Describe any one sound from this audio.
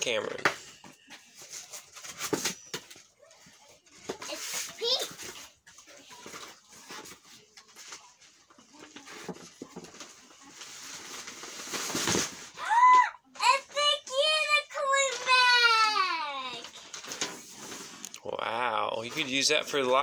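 A young girl talks and squeals with excitement close by.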